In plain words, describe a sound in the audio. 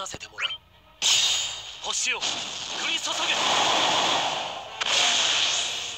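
Sword slashes and magic blasts whoosh and crash.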